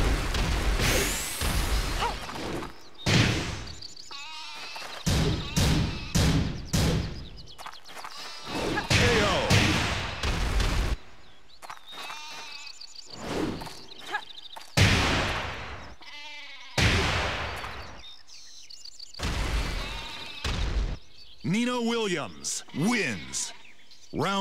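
A young woman grunts and shouts as she fights.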